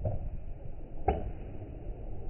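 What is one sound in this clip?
A baseball smacks into a leather glove.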